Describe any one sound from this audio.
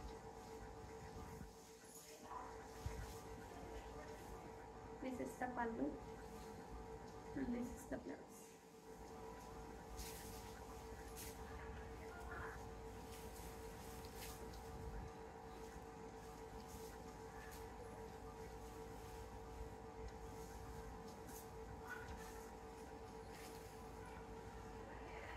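Silk fabric rustles as it is unfolded and handled.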